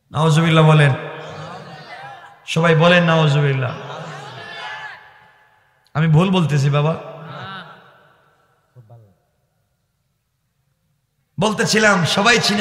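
A man preaches with animation into a microphone, his voice echoing through loudspeakers.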